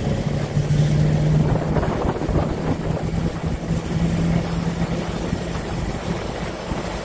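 A veteran car's engine runs as the car drives along.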